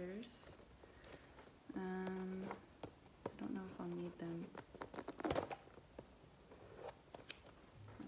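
Scissors snip at a cardboard box.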